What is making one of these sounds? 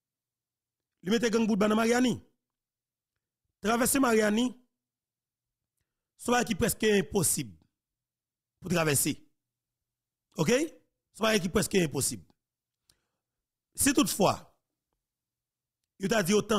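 A man speaks expressively into a close microphone, in short bursts with pauses.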